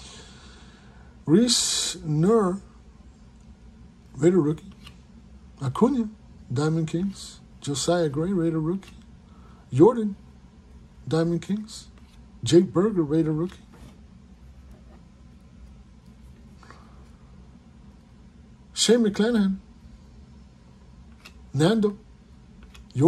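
Trading cards rustle and slide softly as hands flip through them.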